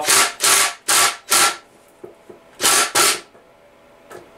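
An impact wrench rattles in short, loud bursts.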